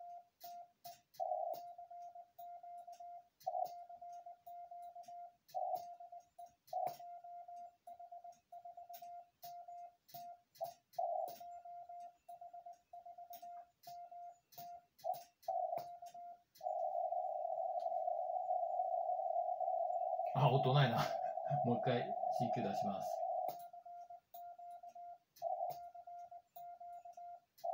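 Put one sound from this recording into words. Morse code beeps sound steadily from a radio, with one long unbroken tone in the middle.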